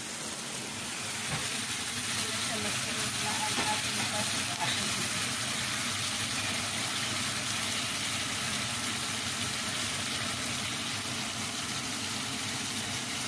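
Sauce sizzles and bubbles in a frying pan.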